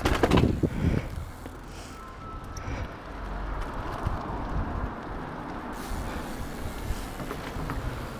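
Bicycle tyres roll along a pavement.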